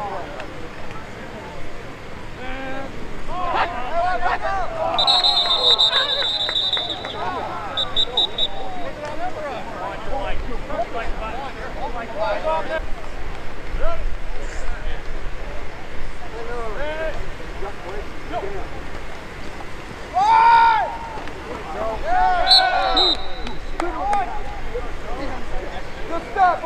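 A crowd of men and women shouts and cheers outdoors.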